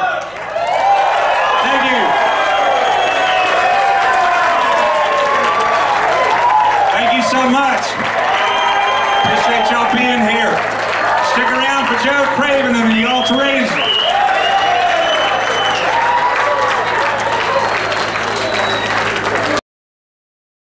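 A live band plays amplified music.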